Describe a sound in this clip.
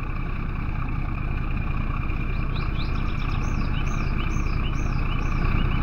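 An engine rumbles steadily.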